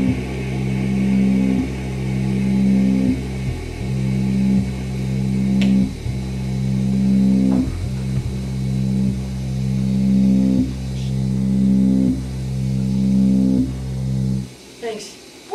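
A keyboard plays deep, sustained chords in steady pulses.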